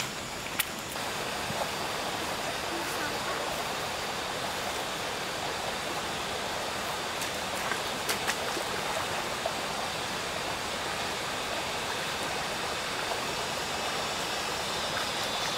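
Water flows steadily in a shallow stream.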